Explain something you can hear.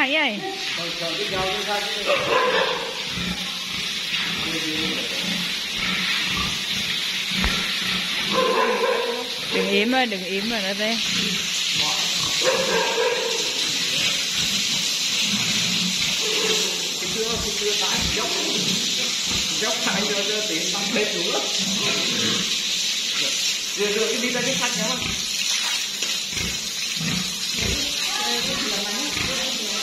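A hose sprays water with a steady hiss.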